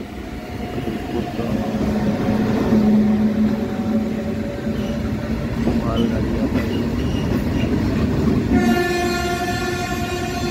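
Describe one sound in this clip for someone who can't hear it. A freight train rumbles loudly past close by.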